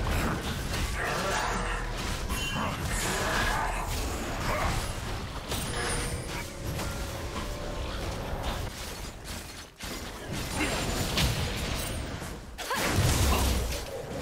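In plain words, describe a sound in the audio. Spell effects whoosh and clash in a fast fight.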